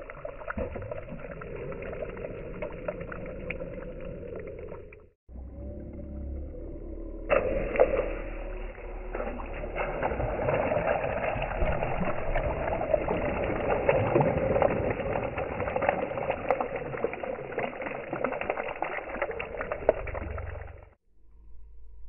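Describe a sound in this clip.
Stones skip and splash across the surface of a lake.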